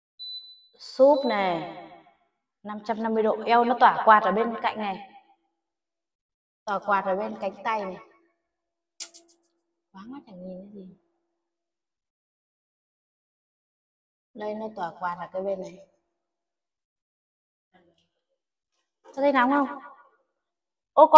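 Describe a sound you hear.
A young woman talks close by, in short bursts, with animation.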